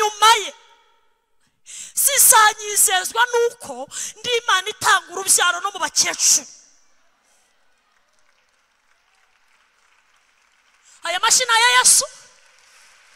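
A woman preaches with passion into a microphone, her voice loud through loudspeakers.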